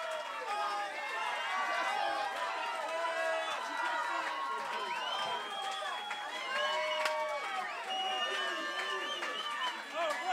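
A crowd cheers and shouts excitedly close by.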